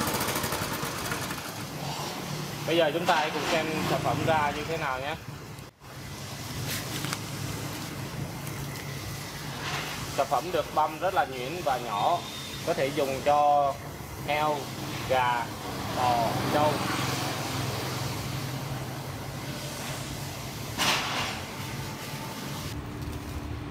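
A petrol engine runs steadily nearby.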